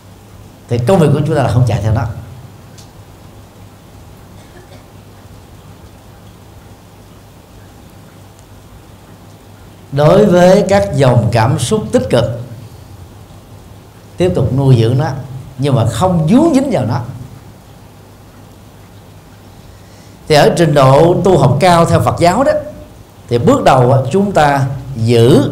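A middle-aged man speaks calmly and warmly into a microphone, pausing between phrases.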